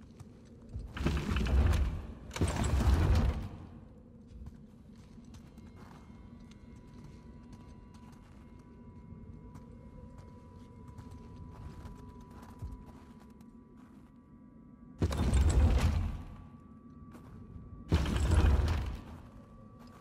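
A heavy wooden mechanism creaks and grinds loudly in short bursts.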